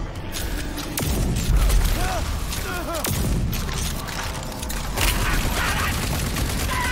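Fiery explosions boom and roar.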